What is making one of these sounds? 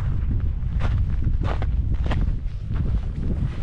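Jacket fabric rustles close by.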